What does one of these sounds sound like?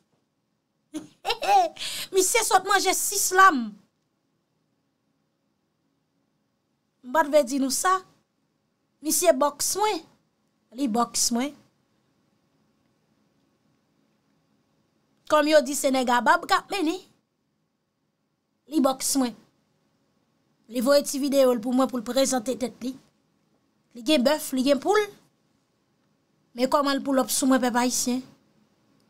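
A young woman speaks with animation close to a microphone, in short bursts.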